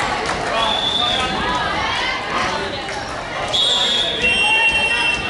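Young women call out and chatter in a large echoing hall.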